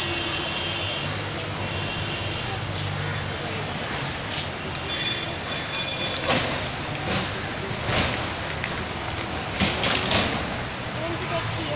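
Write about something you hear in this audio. City street traffic rumbles and hums outdoors.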